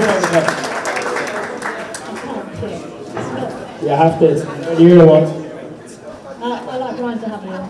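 An elderly woman answers into a microphone.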